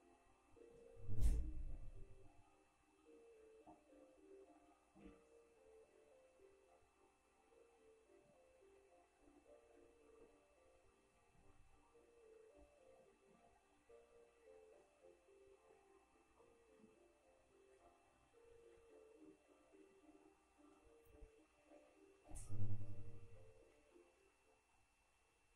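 Gentle music plays through a small television speaker.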